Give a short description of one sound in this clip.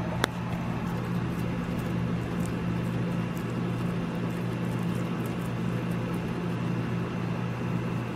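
A guinea pig munches on hay with soft, quick crunches.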